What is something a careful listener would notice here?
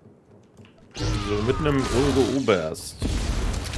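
Loud whooshing blasts and energy zaps burst out.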